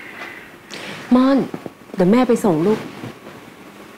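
A woman speaks with agitation and close by.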